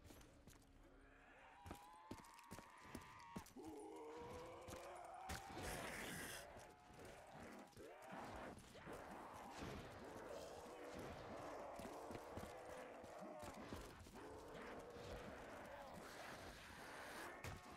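Guns fire in rapid bursts of sharp shots.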